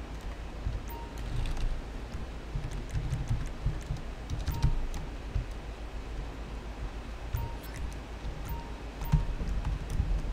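Short electronic menu beeps sound several times.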